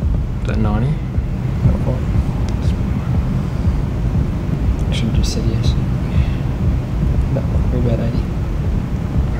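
A man asks questions in a calm voice, close by.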